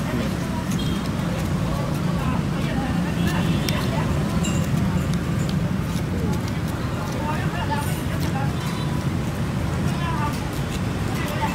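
A plastic spoon scrapes and clinks against shaved ice in a glass bowl.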